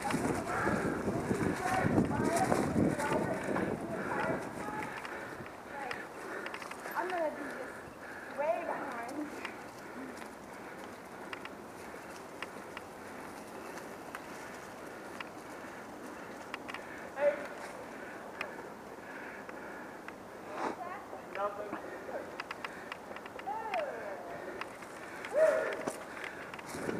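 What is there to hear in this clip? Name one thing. Bicycle tyres crunch over dry leaves and dirt.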